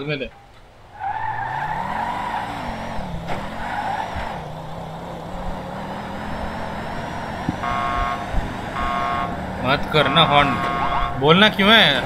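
A car engine hums and revs as the car drives along a road.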